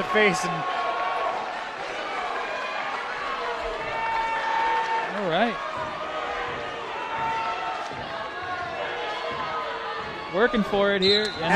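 A crowd of people talks and calls out in a large echoing hall.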